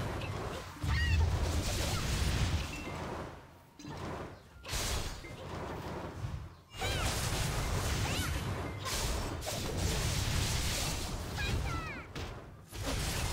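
Blows land with heavy thuds and bursts.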